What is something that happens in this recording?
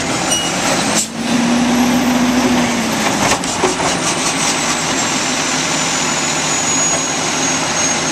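A mechanical arm whines as it lifts and tips a bin.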